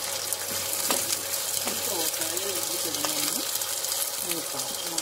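Vegetables sizzle and crackle steadily in a hot pan.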